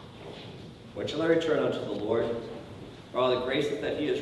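A middle-aged man speaks calmly and slowly, as if reading out, in an echoing hall.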